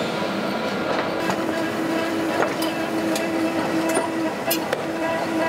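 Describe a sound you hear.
Ceramic pieces clink against each other.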